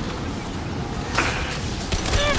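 A loud blast booms and crackles.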